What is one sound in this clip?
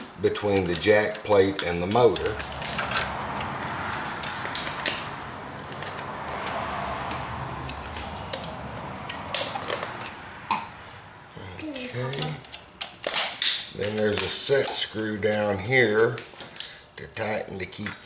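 A wrench clicks and clinks against metal parts.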